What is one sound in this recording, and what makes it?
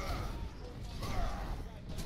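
A game weapon fires with a crackling energy burst.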